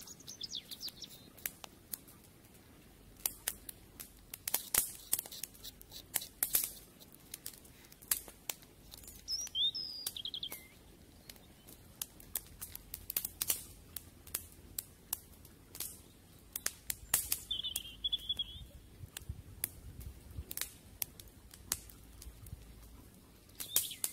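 A small fire crackles and pops.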